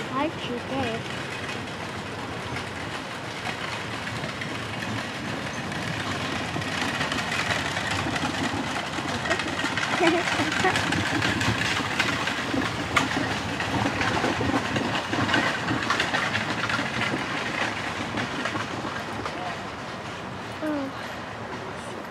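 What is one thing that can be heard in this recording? Carriage wheels rumble and rattle over the ground.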